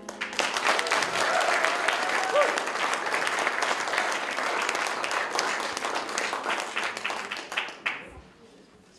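An audience applauds loudly in a small hall.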